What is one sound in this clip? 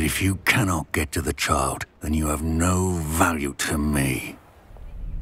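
An old male voice speaks with a rasping snarl.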